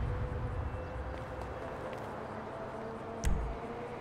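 Footsteps tap on paving stones.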